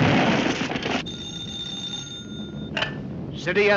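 A telephone rings.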